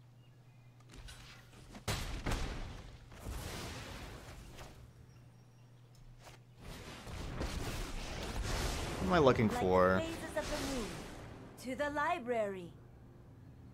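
Magical game sound effects whoosh, swell and chime.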